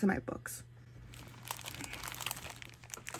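Plastic sticker packets rustle as they are handled.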